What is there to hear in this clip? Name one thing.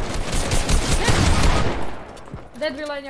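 Gunshots crack in quick bursts in a video game.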